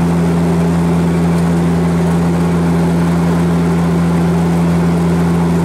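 An aircraft engine drones steadily and loudly from inside the cabin.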